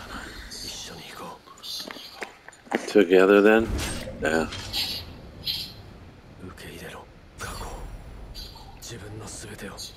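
A young man speaks quietly and calmly.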